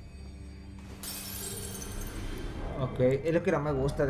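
A bright magical shimmer rings out and fades.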